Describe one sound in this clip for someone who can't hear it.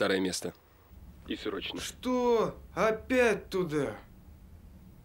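A young man answers on a mobile phone.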